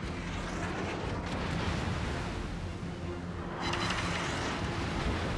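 Water rushes steadily along a ship's hull.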